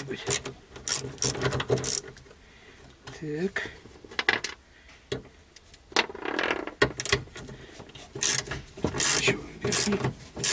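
A ratchet wrench clicks in short bursts.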